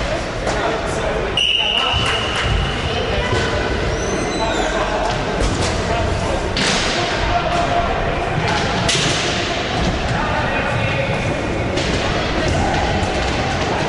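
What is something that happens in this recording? Roller skates rumble on a wooden floor.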